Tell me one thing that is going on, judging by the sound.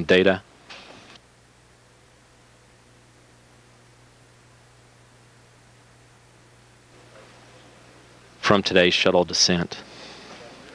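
A man speaks briefly over a radio link.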